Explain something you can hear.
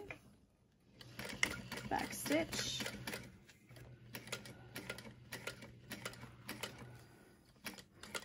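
A sewing machine hums and stitches steadily.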